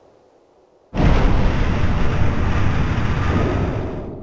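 Loud music plays.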